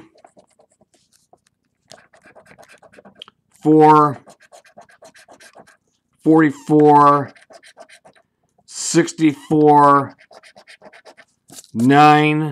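A coin scratches rapidly across a card.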